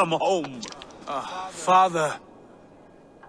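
A younger man answers softly with emotion.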